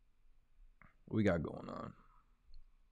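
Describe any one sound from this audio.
A young man speaks briefly and casually into a close microphone.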